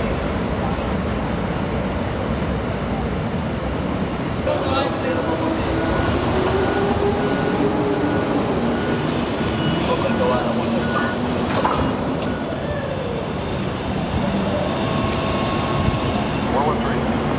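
A truck engine idles nearby.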